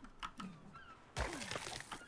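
A stone hatchet thuds into a carcass.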